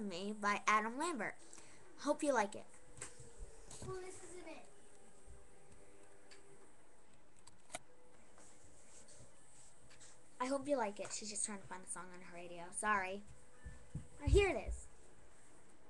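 A young girl talks animatedly, close up through a small microphone.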